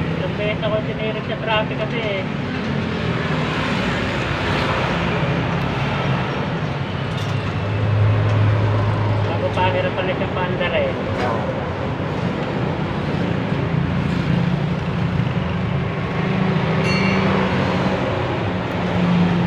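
A screwdriver scrapes and clicks against small metal parts.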